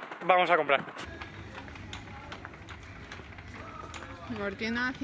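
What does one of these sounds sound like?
A shopping trolley's wheels rumble over a tiled floor.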